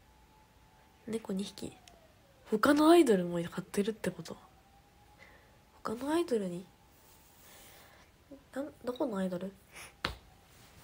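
A young woman talks casually and close to a microphone, in short bursts with pauses.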